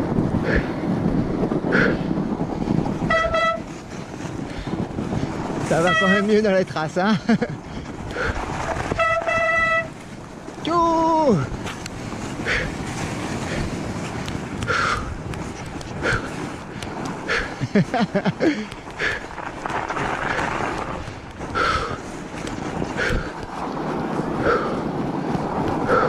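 Bicycle tyres crunch and rumble over packed snow.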